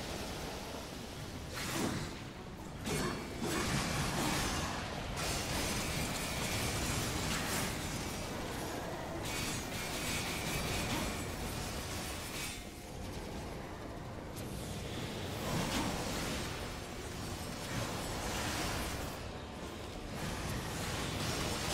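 A man talks into a headset microphone with animation.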